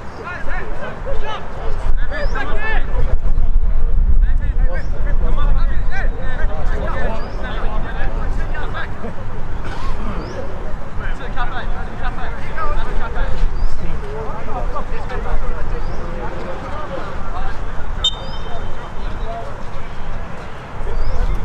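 Young players shout and call to each other across an open pitch outdoors.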